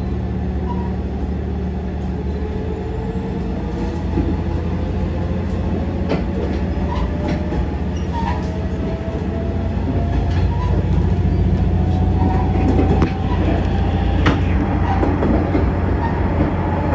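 A train's motor whines, slowly rising in pitch as the train speeds up.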